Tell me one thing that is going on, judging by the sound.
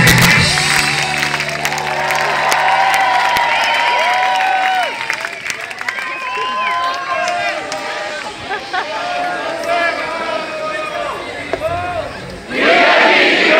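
A large crowd sings loudly together outdoors.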